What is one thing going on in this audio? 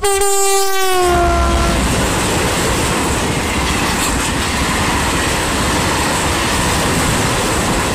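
A freight train rolls past close by, its wheels clattering and rumbling on the rails.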